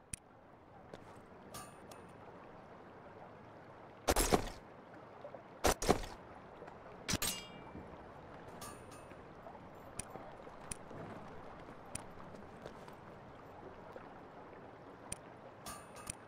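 Short interface clicks and chimes sound as menus open and close.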